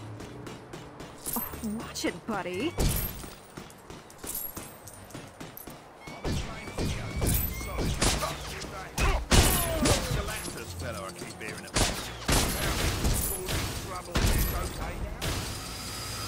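Video game blasts and impacts thump and crackle in quick bursts.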